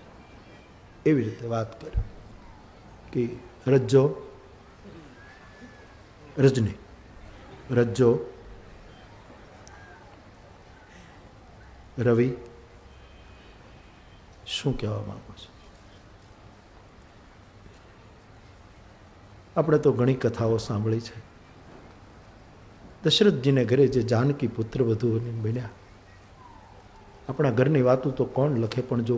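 An elderly man speaks into a microphone in slow, spaced phrases, with long pauses.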